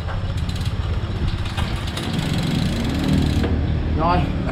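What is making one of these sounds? A bicycle chain and rear gears tick and click as the crank is turned by hand.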